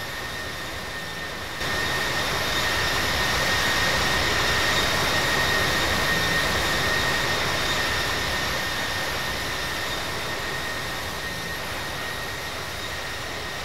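Jet engines roar steadily with a high whine as an airliner flies past.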